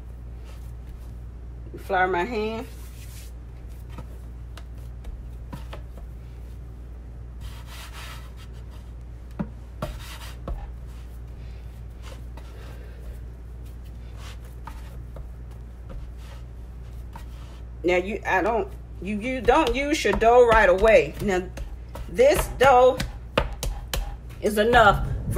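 Hands knead and pat soft dough on a wooden board with quiet thuds.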